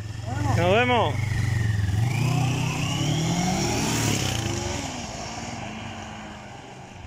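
A motorbike engine revs up sharply and speeds away, fading into the distance.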